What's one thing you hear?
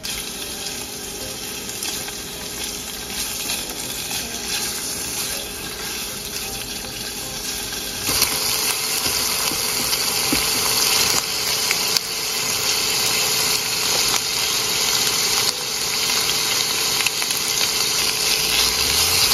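Chopsticks scrape and tap against a frying pan.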